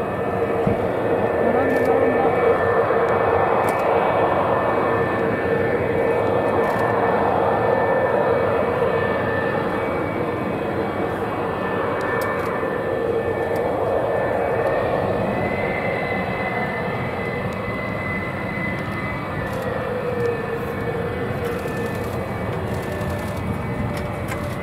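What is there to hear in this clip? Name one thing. Jet engines roar and whine loudly close by.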